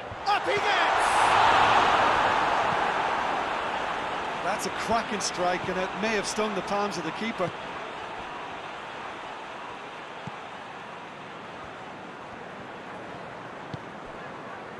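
A stadium crowd roars loudly, then the roar slowly fades to a steady murmur.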